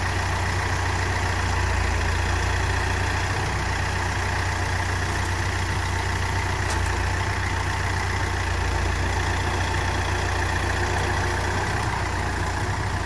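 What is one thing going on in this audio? A diesel utility tractor engine rumbles as the tractor creeps forward.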